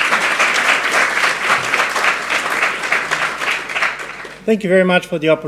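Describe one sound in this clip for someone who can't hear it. An audience claps loudly in a large hall.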